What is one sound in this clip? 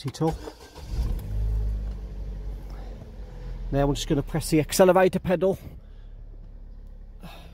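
A car engine starts and idles with a low, steady hum.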